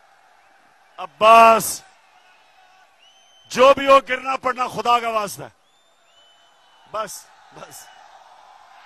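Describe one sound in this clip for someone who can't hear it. A man speaks forcefully through a microphone and loudspeakers.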